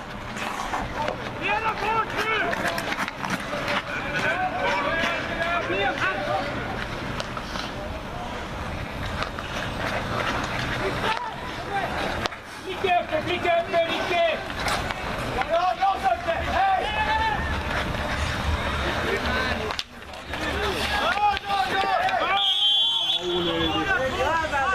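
Men shout and call out to each other across an open outdoor ice rink.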